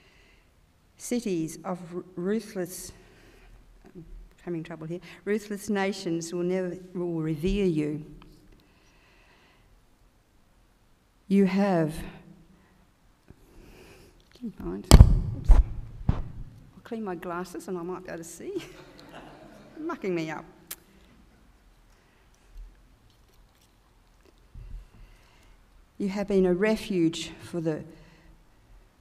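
A woman reads aloud calmly through a microphone, with pauses, in a large room.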